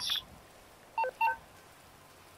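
A menu beeps twice in quick succession.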